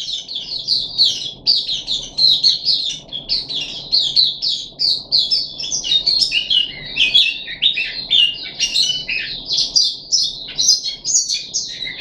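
A small bird sings a fast, high, twittering song close by.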